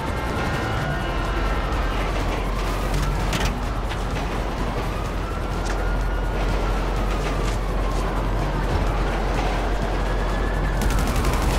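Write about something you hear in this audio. A diesel freight train rumbles past close by.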